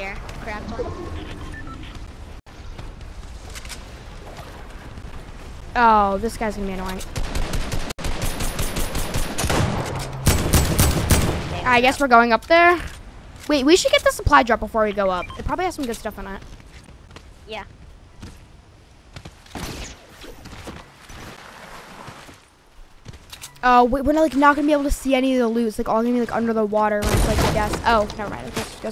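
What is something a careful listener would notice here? A boy talks excitedly into a close microphone.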